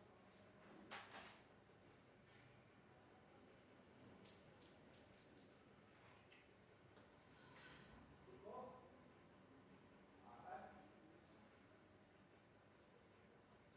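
Fingers rustle through hair close by.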